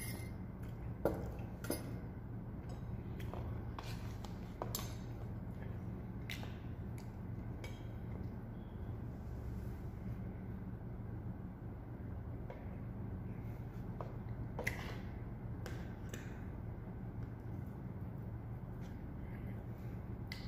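Metal cutlery clinks and scrapes against a plate.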